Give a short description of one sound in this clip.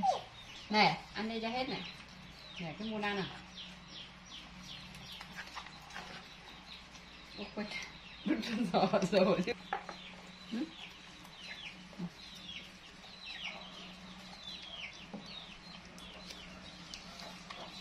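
Baby macaques chew and smack on longan fruit.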